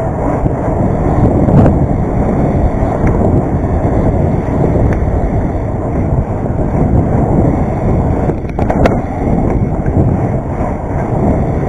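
Wind rushes loudly past a bicycle rider moving outdoors.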